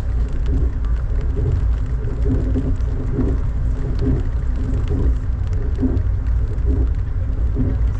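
Rain taps against a window.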